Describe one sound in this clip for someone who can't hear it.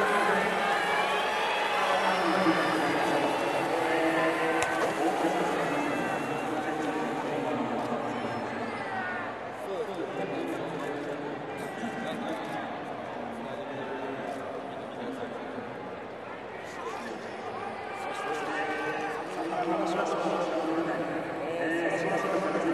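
A man asks questions into a microphone.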